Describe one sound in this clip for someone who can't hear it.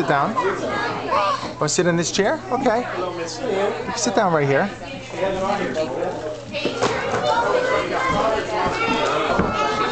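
A toddler girl babbles and squeals up close.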